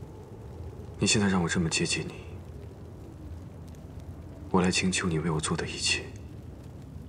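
A young man speaks softly and tenderly up close.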